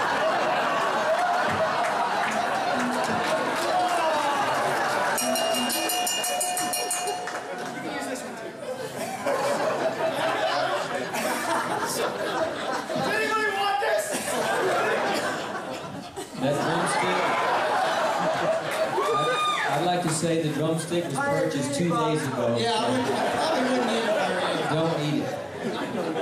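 A group of men and women sing together into microphones.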